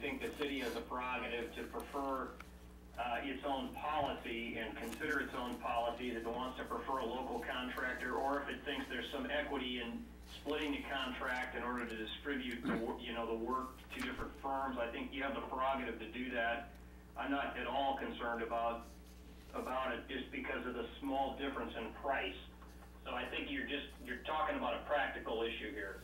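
A man speaks calmly and steadily into a microphone.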